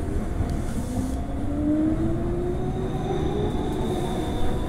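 A train's electric motor whines, rising in pitch as it speeds up.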